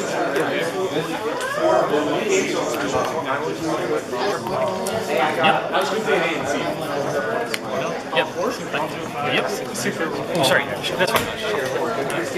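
Playing cards are laid down softly on a table.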